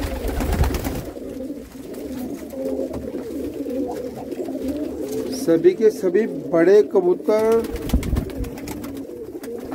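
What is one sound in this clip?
Many pigeons coo in low, throaty, overlapping calls.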